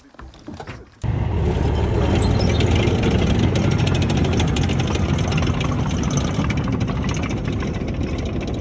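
An armoured vehicle's engine roars loudly as it drives past.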